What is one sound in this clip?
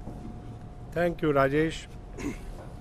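An elderly man speaks briefly into a microphone.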